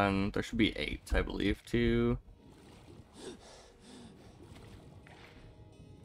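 Water splashes and swirls.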